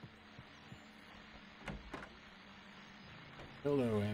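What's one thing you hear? A wooden wardrobe door creaks open.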